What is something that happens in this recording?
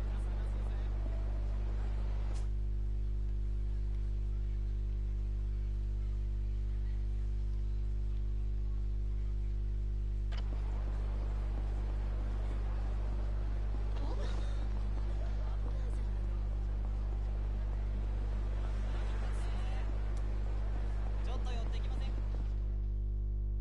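Busy street noise murmurs in the background.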